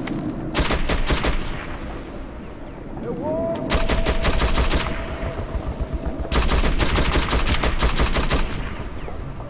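An automatic gun fires in rapid, loud bursts.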